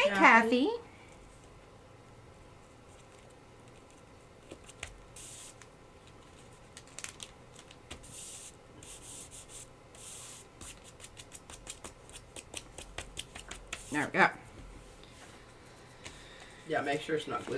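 Hands smooth and pat fabric on a table with soft rustles.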